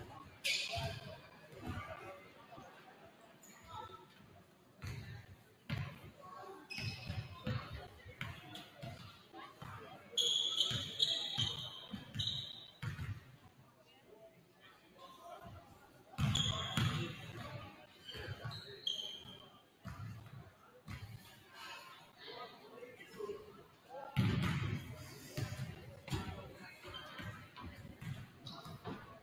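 People chatter in the background of the echoing gym.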